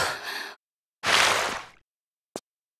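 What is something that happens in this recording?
Water splashes around a swimmer.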